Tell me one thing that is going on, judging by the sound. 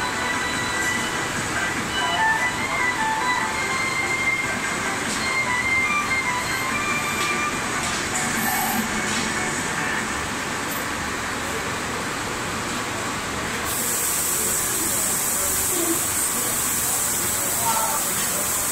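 A furnace roars steadily throughout.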